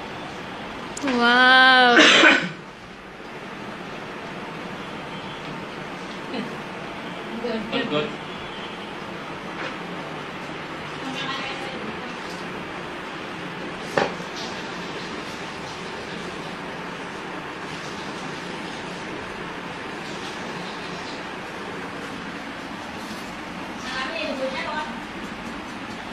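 A young woman speaks briefly and loudly close by.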